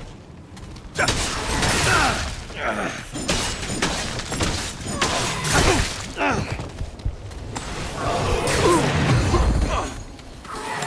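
A creature shrieks and growls.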